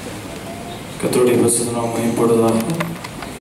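A young man speaks into a microphone over loudspeakers in an echoing hall.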